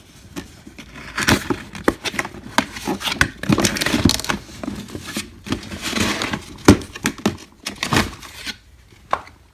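Plastic packaging crinkles and rustles as hands handle it.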